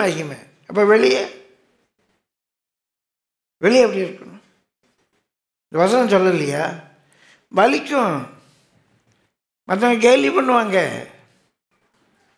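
An elderly man speaks slowly and earnestly into a close microphone, with long pauses.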